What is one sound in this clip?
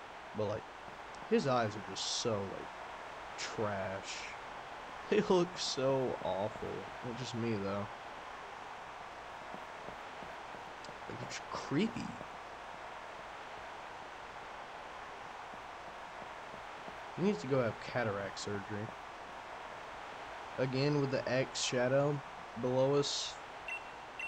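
A young man talks through a headset microphone.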